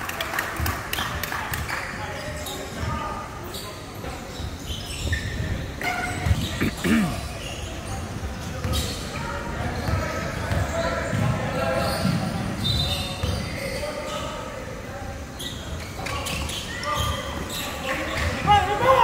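A crowd of spectators and players chatters throughout.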